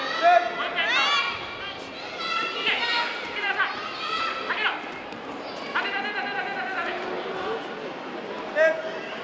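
Young women shout loudly in sharp, rising cries.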